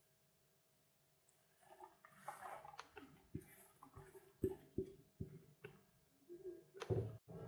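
Chopped onion slides off a wooden board into a pot with soft rustling taps.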